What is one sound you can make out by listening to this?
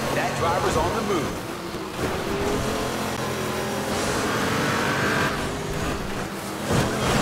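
A racing car engine roars steadily and shifts in pitch.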